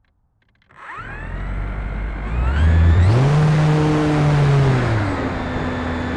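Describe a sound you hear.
A small model plane's engine revs up loudly and whines.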